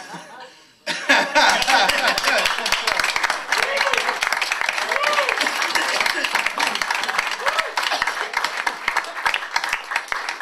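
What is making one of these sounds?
A group of people clap and applaud.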